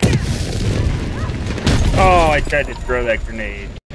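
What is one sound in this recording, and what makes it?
An explosion booms with a roar of flames.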